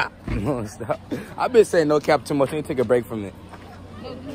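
A young man talks and laughs close by.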